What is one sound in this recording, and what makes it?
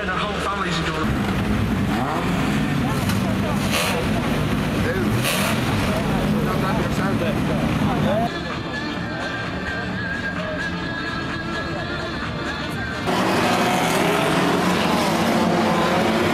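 A car engine rumbles and revs close by.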